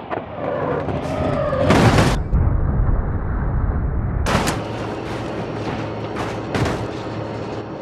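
Metal crunches and bangs loudly as vehicles crash together.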